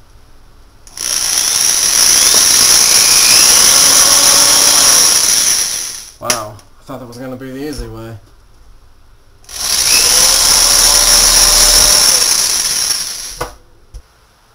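An electric drill whirs loudly in two steady bursts.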